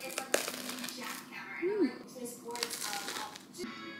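A woman bites and chews crunchy toast.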